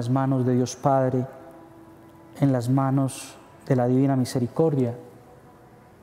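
A man chants a prayer slowly in a low voice, echoing in a reverberant room.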